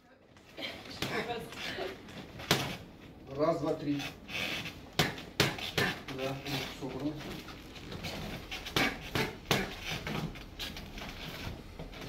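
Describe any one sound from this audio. Gloves smack sharply against punch mitts.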